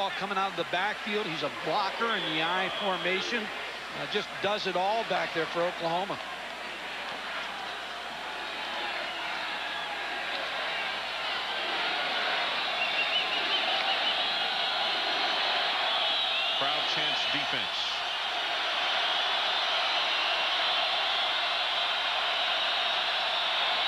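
A large stadium crowd roars steadily, growing louder.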